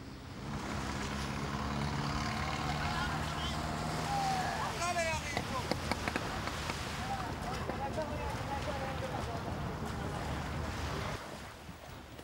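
A small outboard motor hums steadily.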